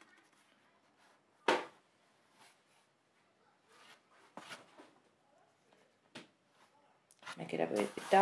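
A stick of pastel rubs and scrapes softly across paper.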